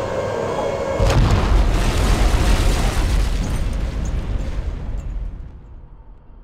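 A shell explodes with a loud boom that rolls away.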